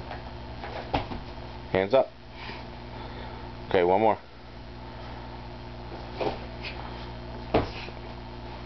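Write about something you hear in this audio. Feet and hands thump on a padded mat.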